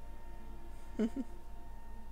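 A young man briefly makes a short vocal sound close to a microphone.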